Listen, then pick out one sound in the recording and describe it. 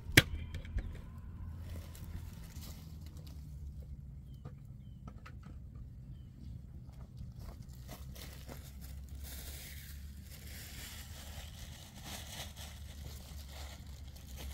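Dry leaves crunch underfoot.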